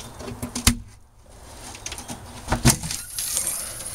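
A hatch lid knocks as it swings open.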